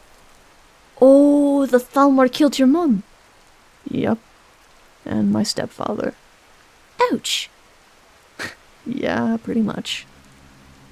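A second man answers calmly, close by.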